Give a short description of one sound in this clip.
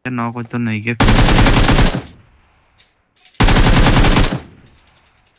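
A rifle fires in loud rapid bursts.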